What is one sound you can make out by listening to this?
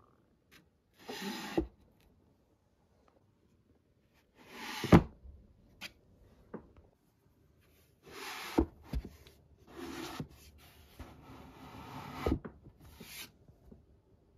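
A hand brushes along a row of book spines.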